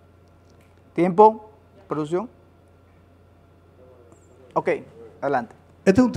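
A man speaks with animation into a microphone, in short bursts.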